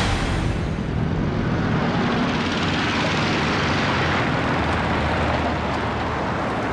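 Tyres crunch on a dirt road.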